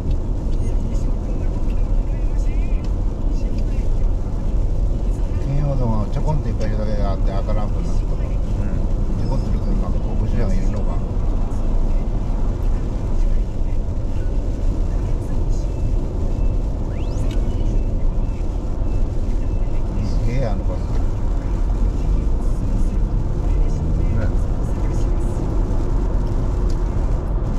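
Raindrops patter on a windscreen.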